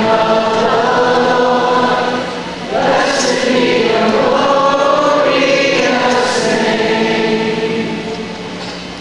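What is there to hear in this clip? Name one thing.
Two men sing loudly through speakers in a large hall.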